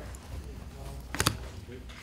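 A deck of cards is shuffled.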